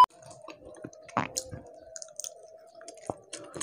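A young man chews and smacks his lips loudly close by.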